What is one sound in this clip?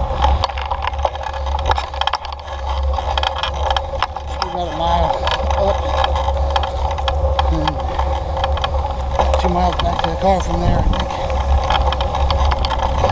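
Tyres crunch and rumble along a dirt trail.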